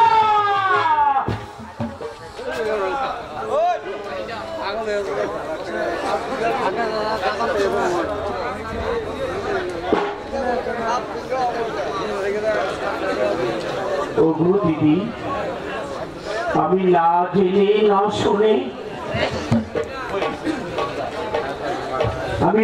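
A man sings loudly through a microphone over loudspeakers outdoors.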